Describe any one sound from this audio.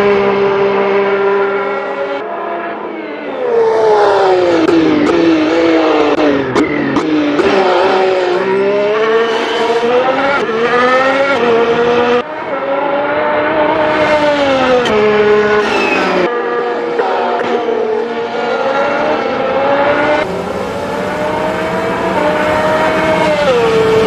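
A racing car's engine screams at high revs, rising and falling in pitch as it shifts gears and brakes.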